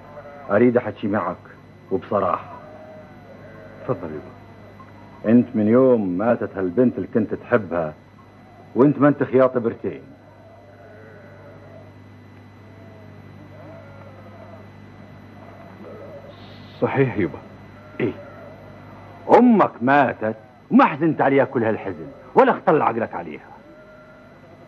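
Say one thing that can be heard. An elderly man speaks firmly and with animation, close by.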